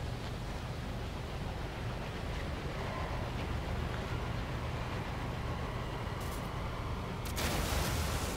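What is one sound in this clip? A swirling portal hums steadily.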